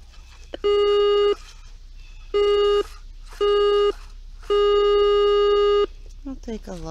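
A metal detector gives loud, steady electronic beeps in short bursts.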